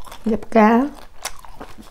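A woman makes a short sung sound close to a microphone.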